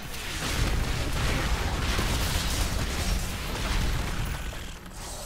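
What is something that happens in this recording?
Loud game explosions and magic blasts crash rapidly.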